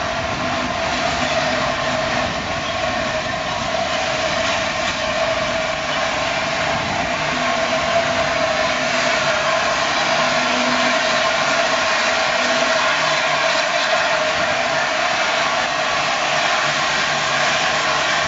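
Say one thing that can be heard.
Steam hisses loudly from a locomotive.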